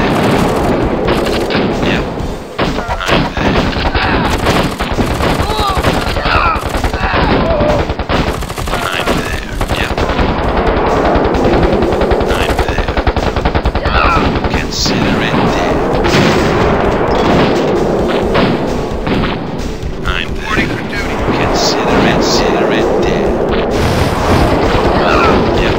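Explosions boom again and again in a game battle.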